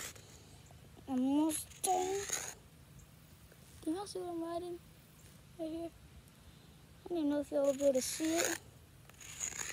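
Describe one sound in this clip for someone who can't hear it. A young boy talks casually close by.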